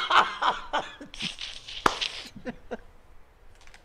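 A man laughs loudly and heartily close to a microphone.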